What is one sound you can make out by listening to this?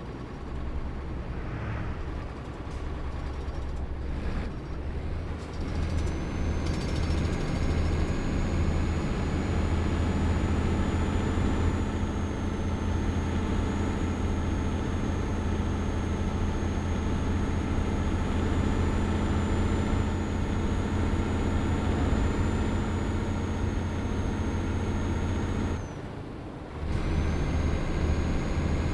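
A truck engine drones steadily and grows louder as it gathers speed.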